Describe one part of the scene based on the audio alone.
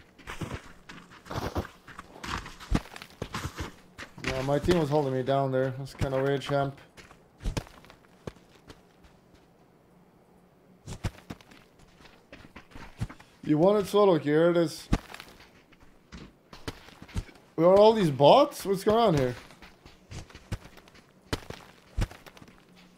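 Many footsteps patter on dry sand.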